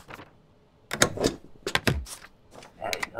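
A rubber stamp thumps down on paper several times.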